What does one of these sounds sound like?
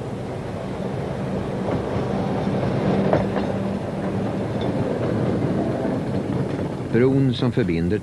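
A tram rumbles and clatters past on its rails.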